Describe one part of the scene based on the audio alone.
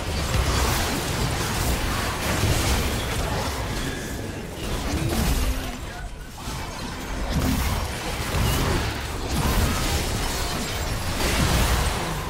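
Sword and weapon hits clash in a video game fight.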